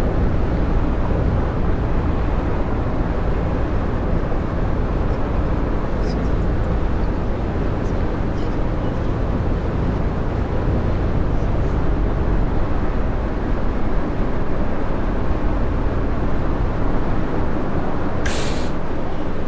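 Tyres roar steadily on a road.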